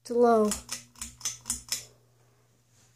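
A pull chain clicks several times.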